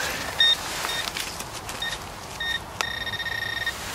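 A hand scratches through loose soil.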